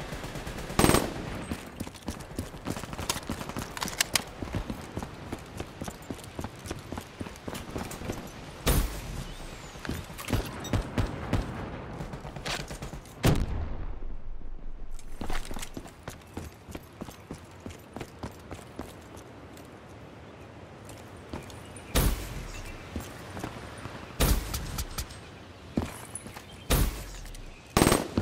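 A gun fires loud, sharp shots.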